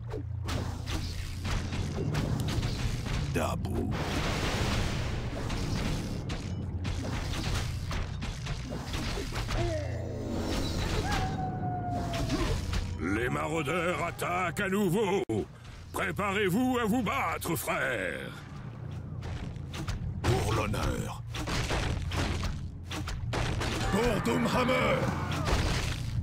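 Weapons clash and strike in a battle.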